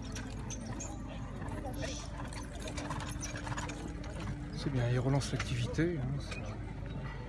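Carriage wheels rumble over grass.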